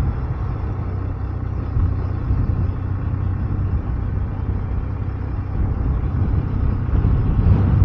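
Wind rumbles against the rider's microphone.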